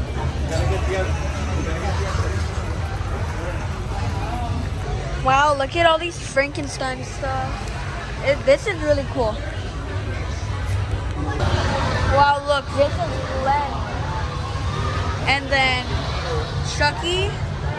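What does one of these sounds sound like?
People murmur and chatter in the background of a busy indoor space.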